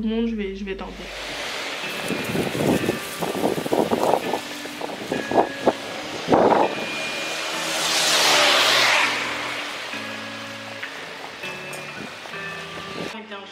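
Rain falls steadily on pavement outdoors.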